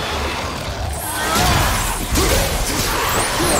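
Flames burst and roar in a fiery blast.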